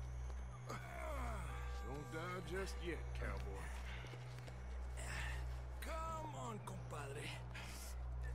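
A man speaks in a low, gravelly voice, close by.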